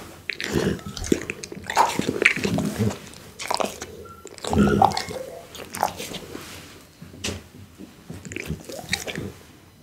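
A dog licks its lips wetly close to a microphone.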